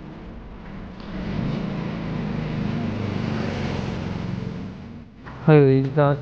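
A motor scooter passes close by.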